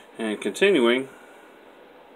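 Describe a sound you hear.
A man speaks briefly close to the microphone, reading out.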